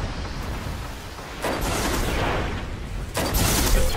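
A heavy energy blast whooshes and roars.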